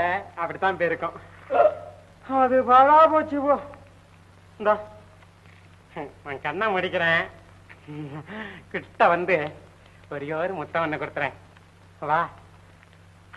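A man speaks and sings with animation, close by.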